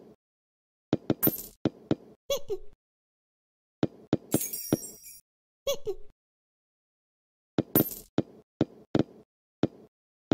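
A chime rings as a ball drops through a hoop.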